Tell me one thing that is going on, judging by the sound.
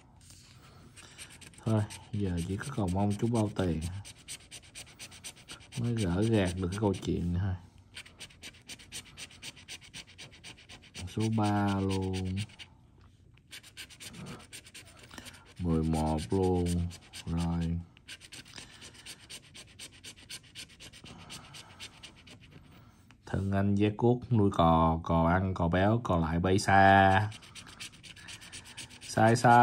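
A coin scratches rapidly across a scratch card.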